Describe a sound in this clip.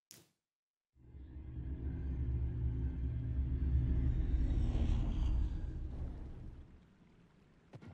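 A heavy stone platform rumbles deeply as it rises.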